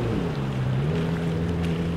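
A motorboat engine hums across the water.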